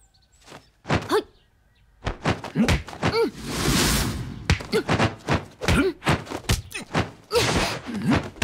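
A young woman cries out sharply with effort.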